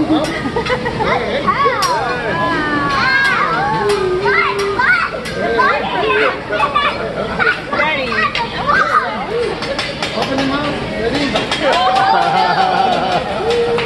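Eggs clink against a metal spatula.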